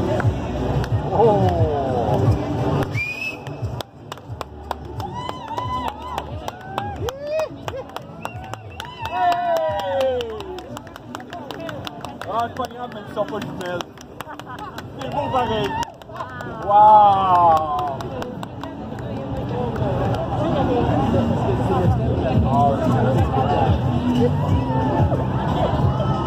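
A crowd of people chatters and calls out nearby outdoors.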